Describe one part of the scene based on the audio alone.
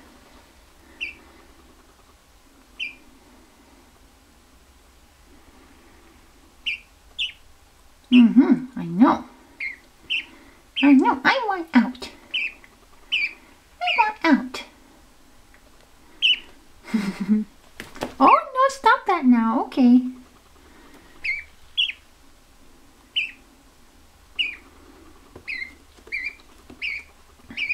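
A gosling peeps in short, high chirps.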